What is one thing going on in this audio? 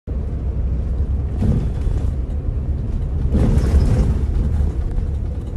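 A bus engine rumbles low and steady while the bus moves.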